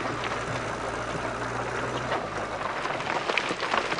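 Rocks crunch and rattle under a loader's bucket.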